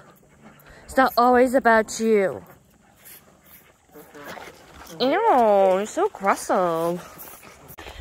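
A calf bleats loudly close by, in drawn-out cries.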